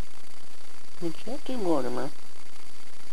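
A small dog whines briefly.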